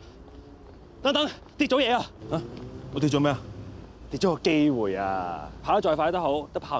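A young man speaks with animation nearby.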